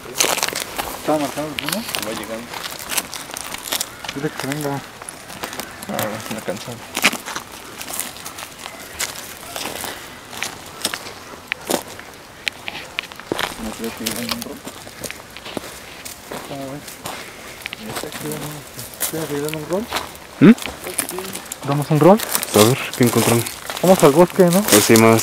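Young men talk with each other close by.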